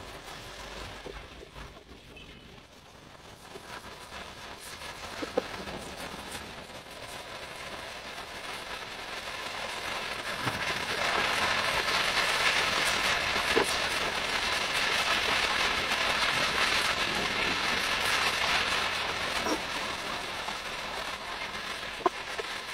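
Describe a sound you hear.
A spatula scrapes and clicks against a pan.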